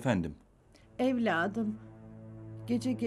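An older woman speaks on the phone.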